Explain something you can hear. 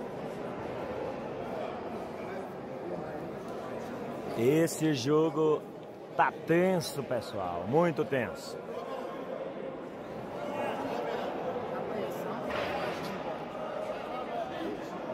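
A crowd murmurs nearby in a large room.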